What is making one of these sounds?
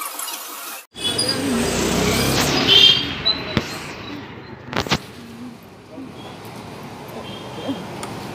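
A car drives slowly past on a street.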